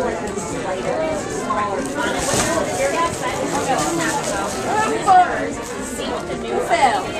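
A toddler babbles and squeals close by.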